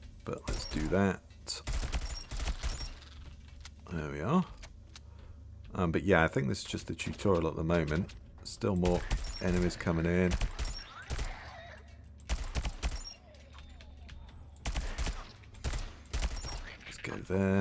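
Gunshots fire in rapid bursts from a rifle close by.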